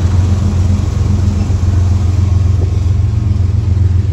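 Freight car wheels clatter over the rails.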